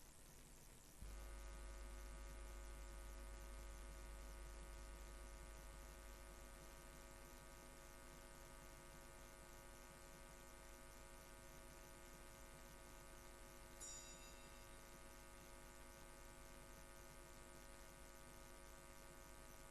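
A pipe organ holds a steady chord in a large echoing hall.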